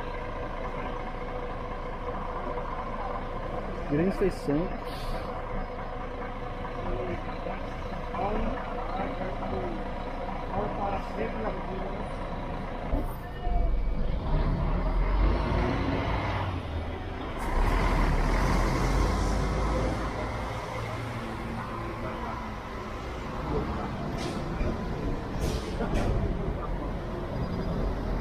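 Large bus engines rumble as buses roll slowly past nearby.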